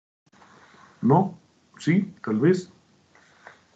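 A man speaks briefly through an online call.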